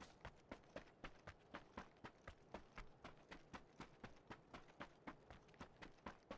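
Footsteps crunch quickly over sandy ground.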